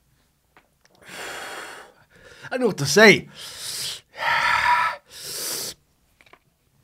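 A man exhales hard in loud, breathy puffs close by.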